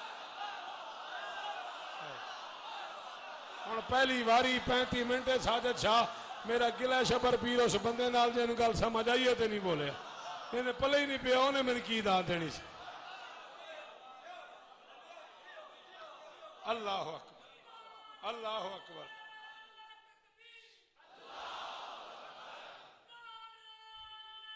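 A crowd of men murmur and chant along.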